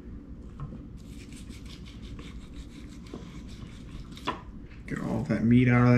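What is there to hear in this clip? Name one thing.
A knife scrapes and cuts against a plate close by.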